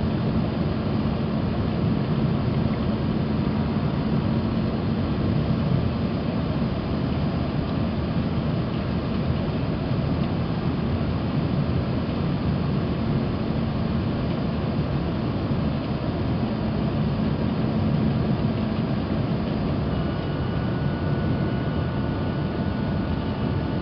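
Jet engines roar steadily from inside an aircraft cabin.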